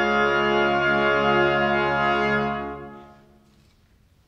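A brass band holds a final chord that dies away.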